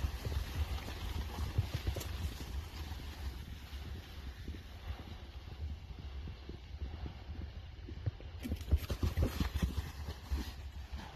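Horses' hooves thud on grassy ground as they gallop past.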